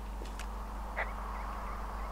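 A two-way radio clicks on.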